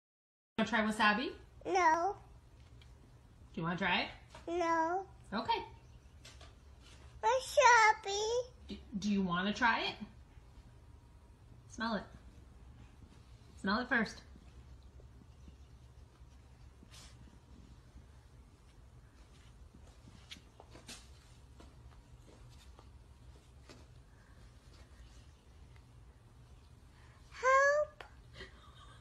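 A toddler speaks in short bursts close by.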